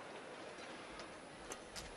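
A racket strikes a shuttlecock with a sharp crack.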